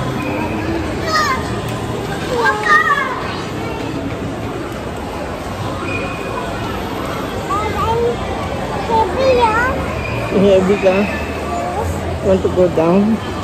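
A small child babbles close by.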